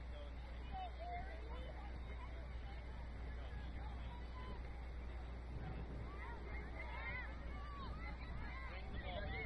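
Players shout and call to each other across an open field, heard from a distance.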